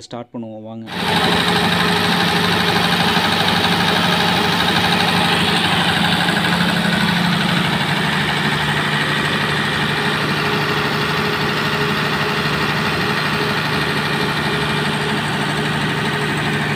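A diesel generator engine runs with a loud, steady roar.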